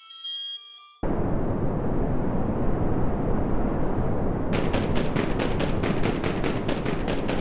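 A fire extinguisher hisses loudly as it sprays.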